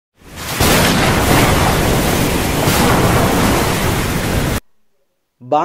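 Strong wind roars in a storm.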